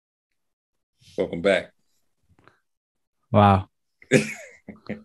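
A man speaks cheerfully over an online call.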